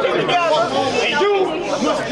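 A young man raps into a microphone over a loudspeaker.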